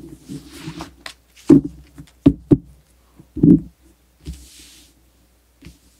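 Playing cards are shuffled and slapped down onto a soft surface.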